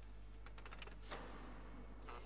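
A metal switch clicks.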